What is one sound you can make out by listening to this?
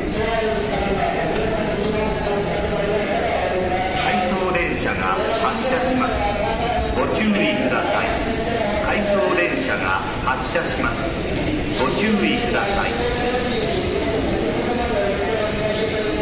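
A train rolls slowly in with a low rumble.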